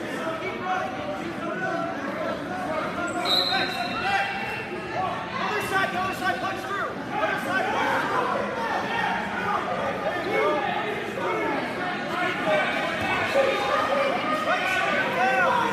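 Several people shout and call out in an echoing hall.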